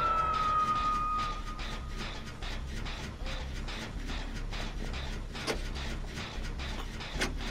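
Metal parts of an engine clatter and rattle in a quick, steady rhythm.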